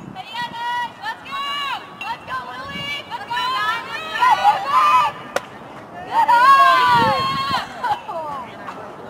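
Young women cheer and chant loudly nearby.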